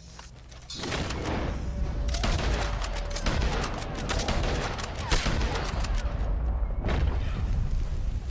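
A rifle fires sharp shots that ring out outdoors.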